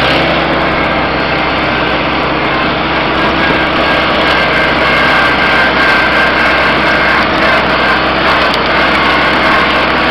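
A small tractor engine rattles loudly and steadily close by.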